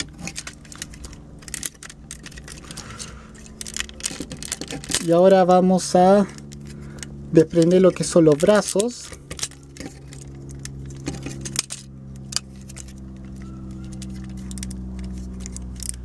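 Plastic toy parts click and rattle as hands move them.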